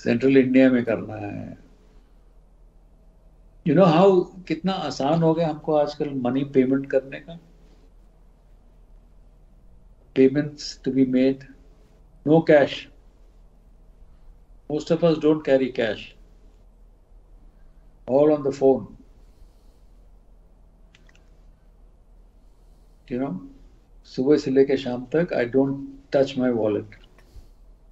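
An elderly man speaks slowly and thoughtfully over an online call, with long pauses.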